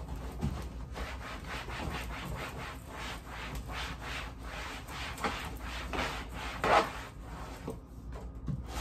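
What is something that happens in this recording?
A cloth rubs briskly against a plastic bin.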